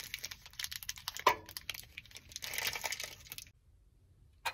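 A plastic wrapper crinkles and tears in hands.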